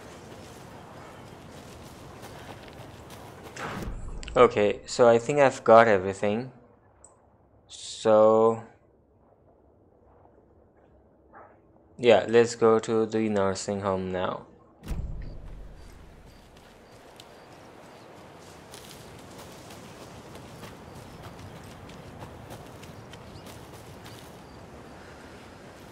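Footsteps rustle softly through forest undergrowth.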